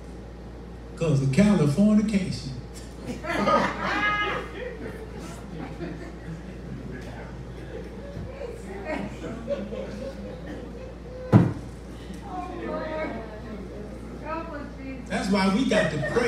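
An elderly man preaches with feeling through a microphone and loudspeakers in an echoing room.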